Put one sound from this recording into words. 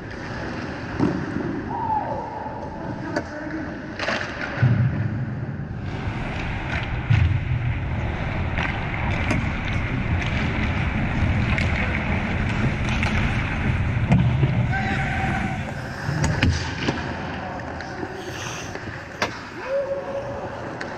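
Hockey sticks clack sharply on the ice and against pucks.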